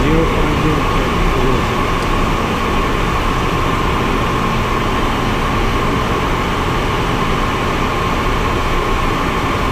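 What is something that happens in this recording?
Wind rushes past the plane's cabin.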